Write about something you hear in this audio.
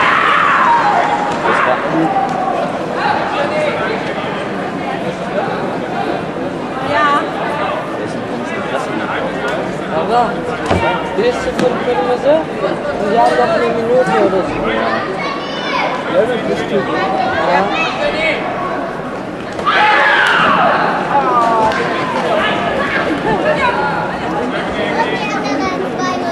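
A crowd of spectators chatters and shouts throughout in a large echoing hall.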